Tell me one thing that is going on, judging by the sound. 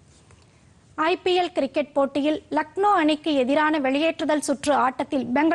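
A young woman reads out the news calmly through a studio microphone.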